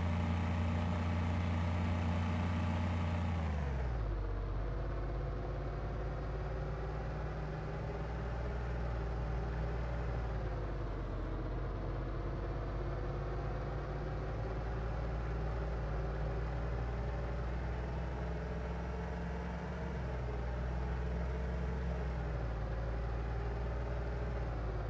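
A car engine hums steadily, dropping in pitch as the car slows and then revving up again.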